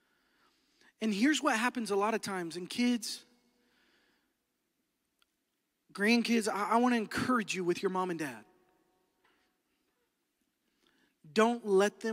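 A man speaks with animation into a microphone, heard through loudspeakers, pausing between phrases.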